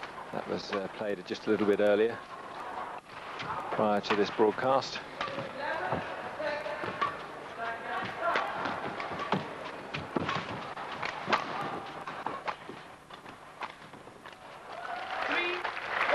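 Rackets strike a shuttlecock back and forth with sharp pops.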